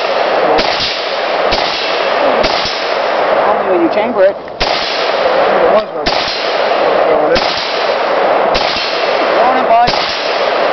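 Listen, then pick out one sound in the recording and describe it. A rifle fires single loud shots, each echoing and ringing out across an open space.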